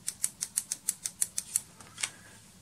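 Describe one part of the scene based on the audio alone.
A plastic part clicks rapidly.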